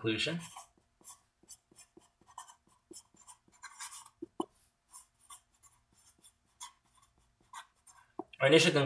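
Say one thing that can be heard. A marker squeaks softly as it writes.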